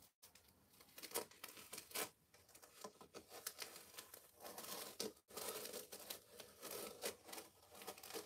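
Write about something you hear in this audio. A plastic film crinkles as it is peeled away.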